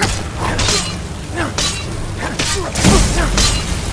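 Blades strike and clash in a fight.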